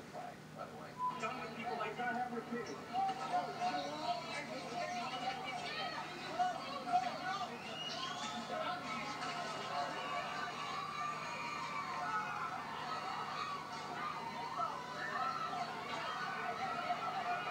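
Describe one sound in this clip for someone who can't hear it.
A crowd shouts and yells outdoors.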